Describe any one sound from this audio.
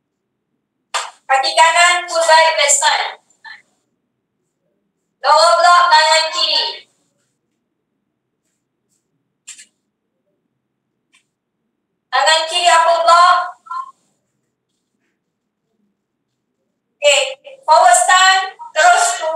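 A young woman speaks calmly in short bursts, heard through an online call.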